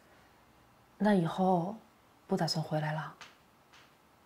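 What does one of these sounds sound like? A young woman asks a question calmly, close by.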